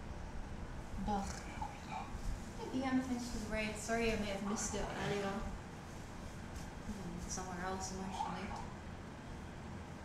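A young woman talks casually into a nearby microphone.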